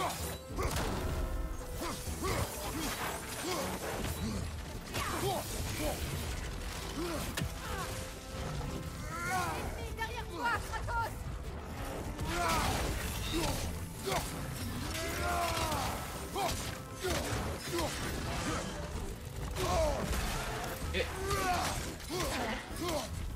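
Weapons clash and strike in a fast fight.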